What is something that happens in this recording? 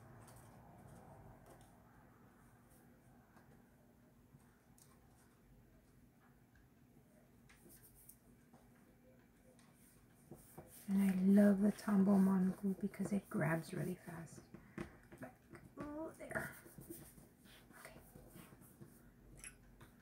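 Paper rustles and slides as hands handle it.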